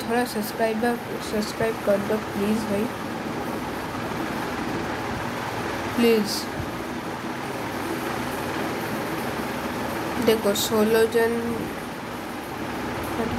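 A sports car engine hums as the car cruises along a road.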